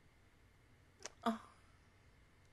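A young woman laughs softly close to a microphone.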